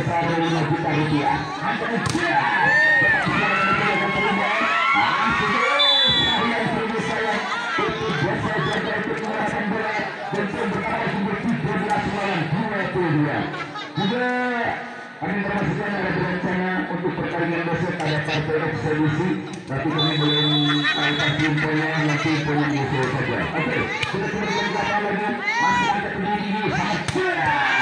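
A large outdoor crowd chatters and cheers loudly.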